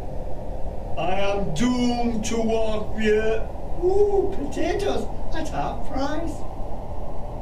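A man speaks slowly in an eerie voice.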